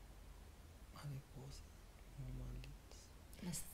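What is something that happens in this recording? A man snores.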